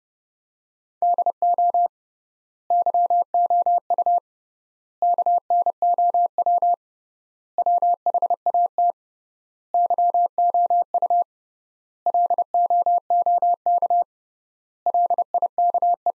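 A Morse code tone beeps in quick bursts of short and long notes.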